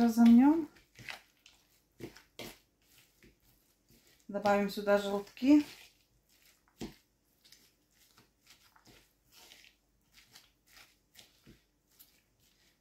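Minced meat squelches as hands knead it.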